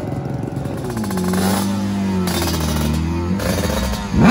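A motorcycle engine screams as the bike launches away.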